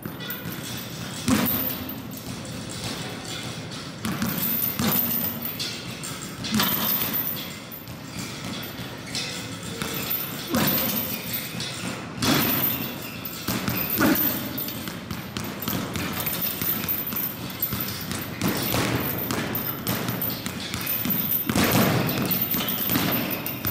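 Boxing gloves thump against a swinging punching ball.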